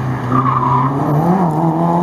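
Tyres skid on the road.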